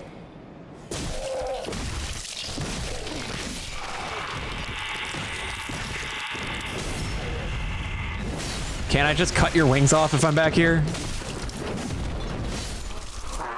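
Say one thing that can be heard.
Swords clash and slash in a game fight.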